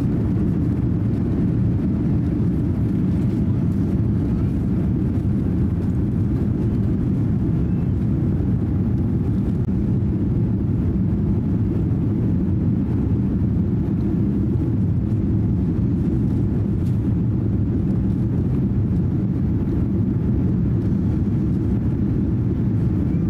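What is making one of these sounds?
Jet engines roar steadily as an airliner climbs after takeoff.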